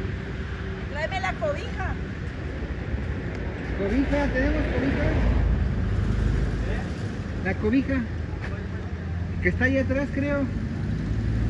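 A woman speaks in a high, coaxing voice close by.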